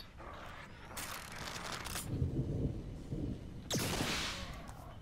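A crossbow fires a bolt with a sharp snap.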